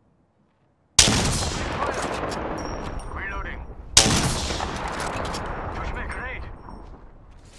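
A rifle fires loud, booming shots that echo and roll away.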